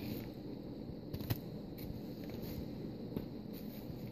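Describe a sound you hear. Stacked cards are set down on a table.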